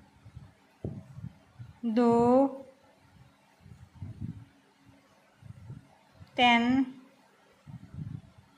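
Yarn rustles softly as it is pulled over a knitting needle.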